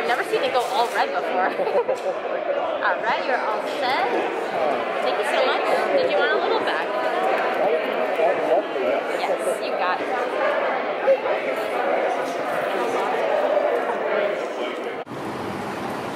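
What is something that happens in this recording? A crowd of people chatters loudly nearby.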